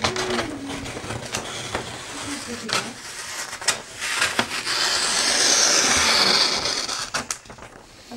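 Scissors cut through stiff paper with a long scraping rasp.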